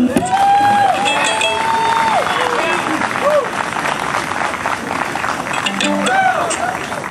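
An acoustic guitar strums along.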